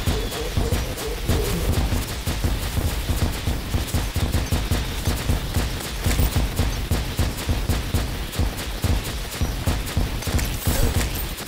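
Rapid game attack sounds hit and crackle over and over.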